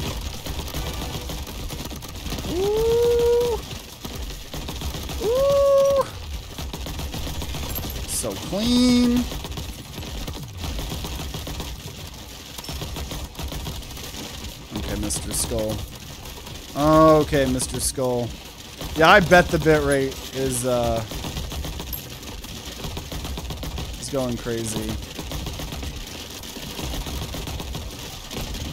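Gunfire and explosions crackle steadily from a video game.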